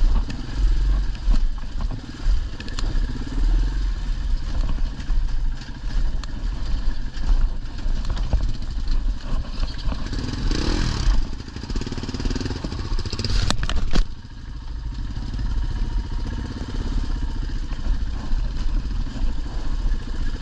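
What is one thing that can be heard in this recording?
Tyres crunch and knock over loose rocks.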